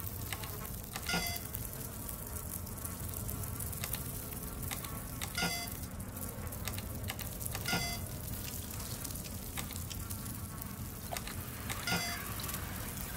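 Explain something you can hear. Keypad buttons beep with short electronic tones.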